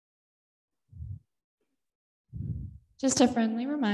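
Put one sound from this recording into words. An older woman speaks into a microphone.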